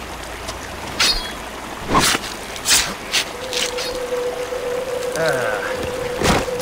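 A knife slices wetly through an animal's hide with sharp, squelching cuts.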